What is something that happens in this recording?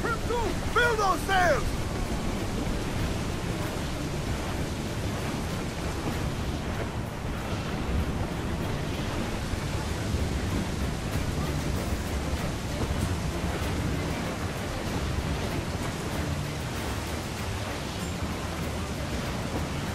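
Rough sea waves crash and surge against a sailing ship's hull.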